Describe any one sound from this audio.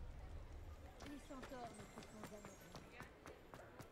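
Footsteps tap quickly on cobblestones.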